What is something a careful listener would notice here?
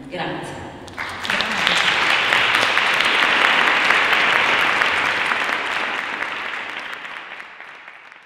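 An audience applauds in a large room, then fades away.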